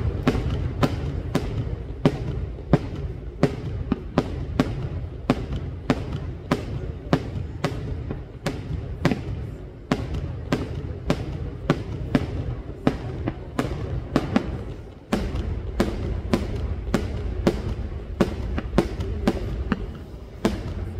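Fireworks bang in quick succession overhead and echo off the mountains.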